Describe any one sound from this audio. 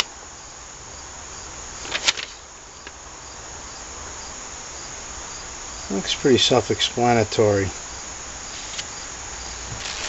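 Paper rustles as it is unfolded and handled.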